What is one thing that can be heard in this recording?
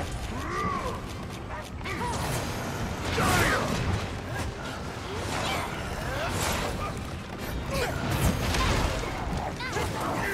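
Blades clash and strike in repeated hits.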